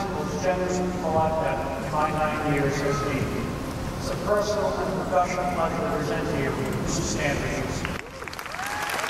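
An elderly man speaks steadily into a microphone in a large echoing hall.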